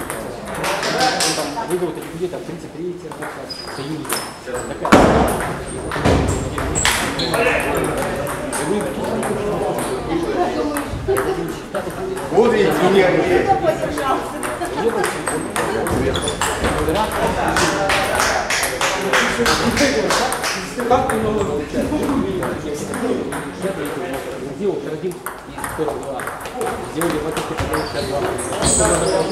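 Men talk nearby in an echoing hall.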